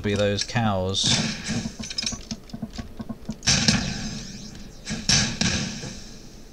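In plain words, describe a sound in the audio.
Gunshots fire rapidly in loud bursts.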